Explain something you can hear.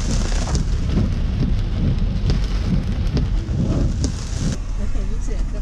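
Rain patters steadily on a car roof.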